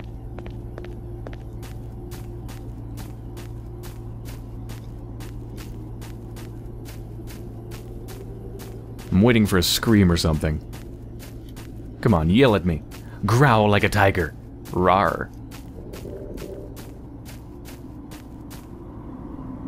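Footsteps crunch quickly over the ground.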